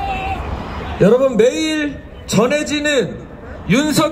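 A man shouts slogans loudly.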